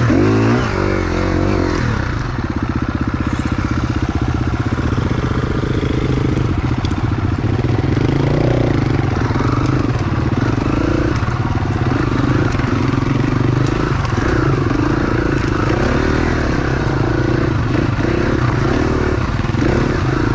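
Another dirt bike engine buzzes nearby.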